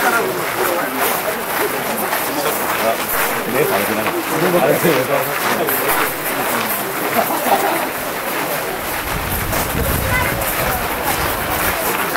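Many footsteps shuffle along a path.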